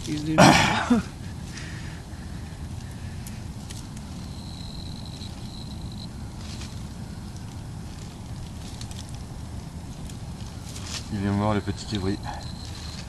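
A man speaks nearby outdoors.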